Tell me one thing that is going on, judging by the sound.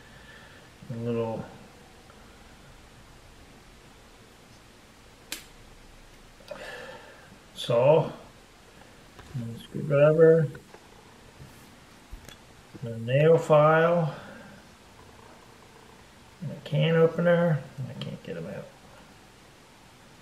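Metal tool parts click as a multi-tool is unfolded.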